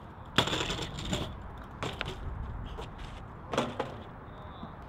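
Bike wheels clatter and thud hard on concrete.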